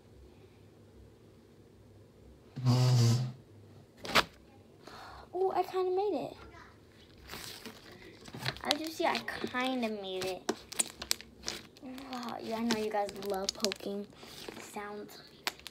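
Slime squelches and pops as hands squeeze and stretch it.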